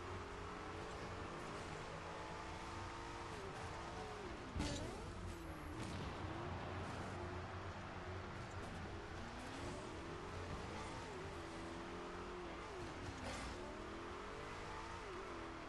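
A toy-like car engine hums steadily, its pitch rising and falling as it speeds up and slows down.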